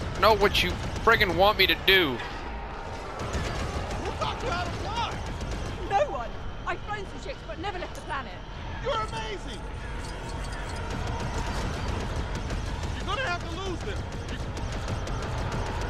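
Laser blasts fire in quick bursts.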